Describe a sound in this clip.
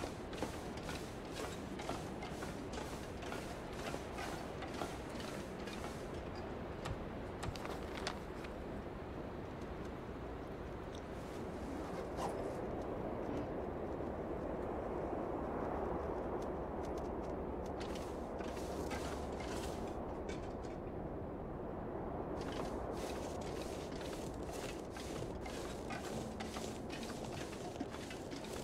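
Wind blows hard and gusts.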